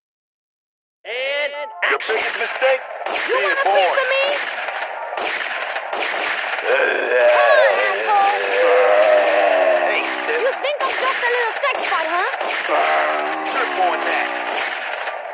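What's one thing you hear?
A shotgun fires repeatedly.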